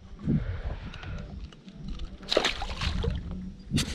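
A fish drops back into the water with a splash.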